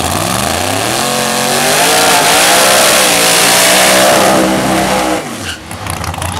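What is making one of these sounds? Tyres screech and squeal in a long burnout.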